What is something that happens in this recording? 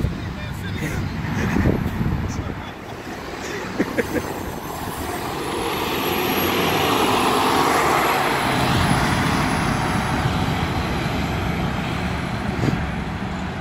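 A city bus engine rumbles as the bus pulls away and fades into the distance.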